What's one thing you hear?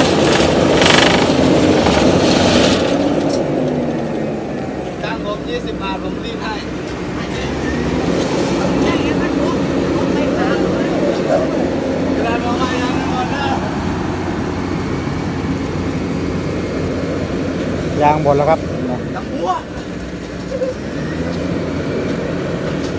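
A heavy paving machine's diesel engine rumbles steadily close by.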